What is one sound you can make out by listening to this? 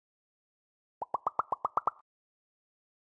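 Short electronic chimes tick rapidly in a quick run.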